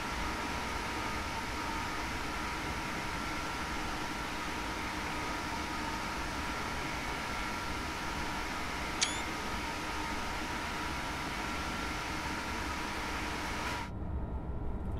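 A high-speed train rushes along the track with a steady roar.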